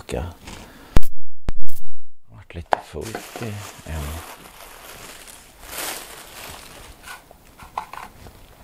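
A plastic tub knocks on a table.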